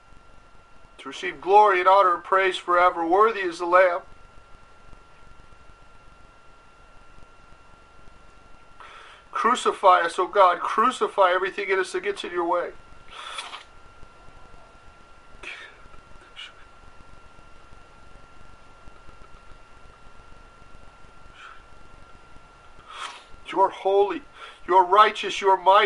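A middle-aged man sings softly and close by, in short phrases with long pauses.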